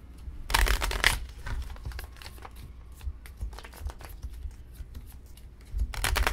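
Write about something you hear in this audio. Playing cards are laid down on a table with soft taps.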